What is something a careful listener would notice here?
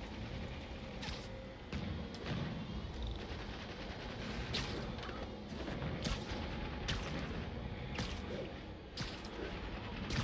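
Web lines zip and snap repeatedly as a figure swings through the air.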